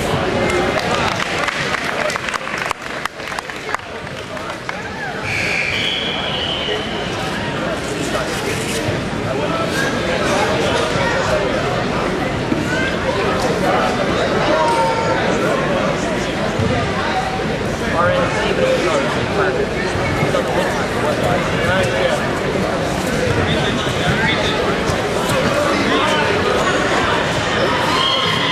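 A crowd of spectators talks and shouts throughout, echoing in a large hall.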